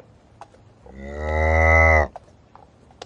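A buffalo lows loudly.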